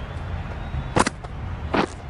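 A bat strikes a ball with a sharp crack.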